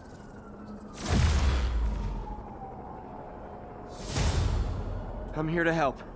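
A bright whooshing chime swells and fades.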